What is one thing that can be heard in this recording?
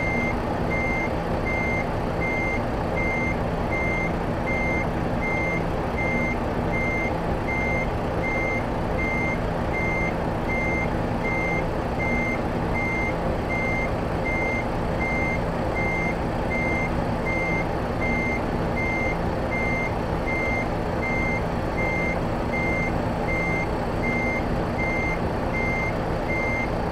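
A reversing alarm beeps in a fast, even rhythm.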